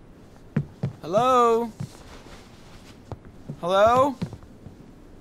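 A young man calls out.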